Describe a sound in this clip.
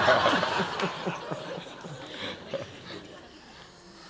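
Two men laugh warmly, heard through microphones.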